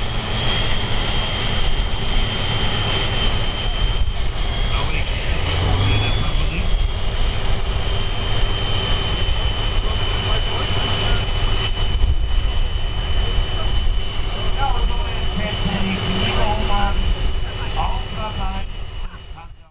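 A big tractor engine rumbles loudly and steadily close by.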